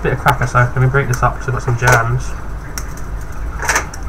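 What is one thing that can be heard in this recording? A crisp cracker snaps and crunches as it is broken into pieces.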